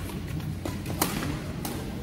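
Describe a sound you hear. A badminton racket hits a shuttlecock in a large echoing hall.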